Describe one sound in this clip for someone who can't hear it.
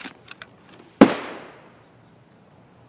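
A rifle fires a single sharp shot with a fading echo.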